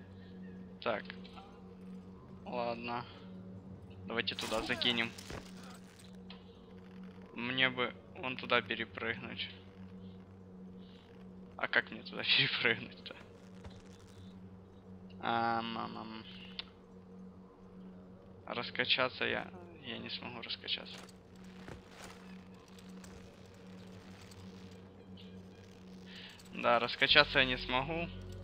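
Boots scrape and shuffle on rock during a climb.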